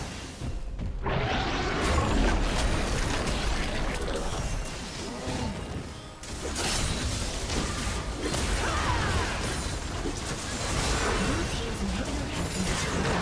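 Fast fighting sound effects of spells and hits crackle and burst.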